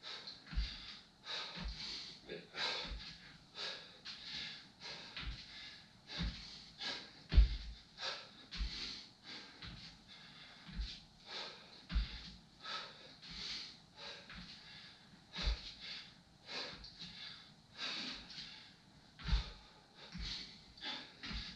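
Bare feet thump softly on a wooden floor.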